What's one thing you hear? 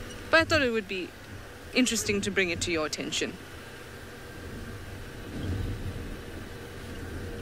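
A vehicle engine rumbles low as it drives along a dirt track.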